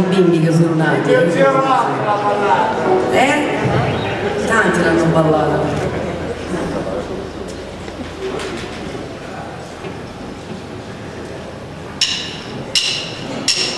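A rock band plays electric guitars, bass and drums.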